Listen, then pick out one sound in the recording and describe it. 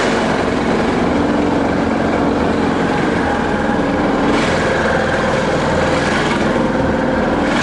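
An engine roars steadily close by.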